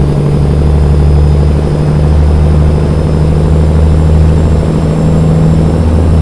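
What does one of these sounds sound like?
A truck's diesel engine rumbles steadily inside the cab.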